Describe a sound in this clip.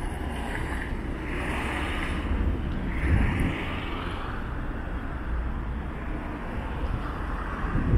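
A car rolls slowly past on the road.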